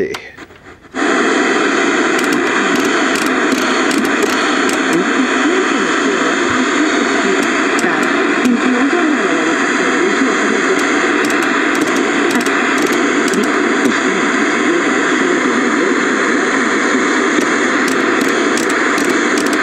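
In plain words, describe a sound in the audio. An old television hisses with loud, steady static.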